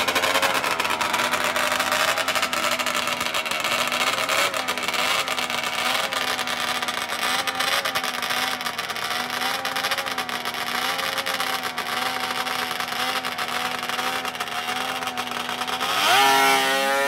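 A snowmobile engine idles loudly close by.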